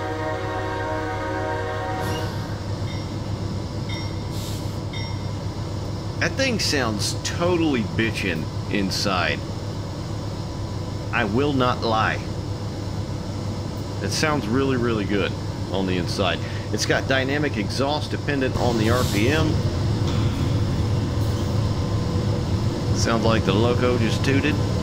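A diesel locomotive engine rumbles steadily.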